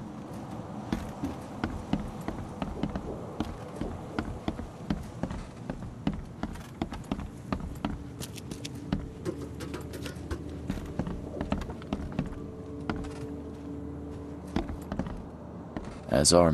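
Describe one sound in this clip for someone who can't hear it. Footsteps walk steadily on a wooden floor and stairs.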